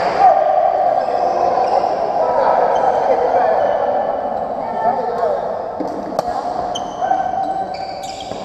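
A crowd chatters in a large echoing hall.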